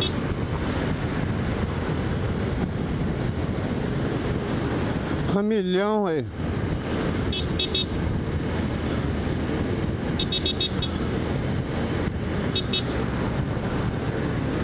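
A motorcycle engine hums steadily as it rides along a road.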